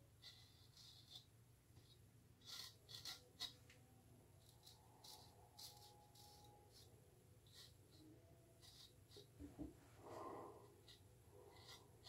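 A straight razor scrapes softly over stubble.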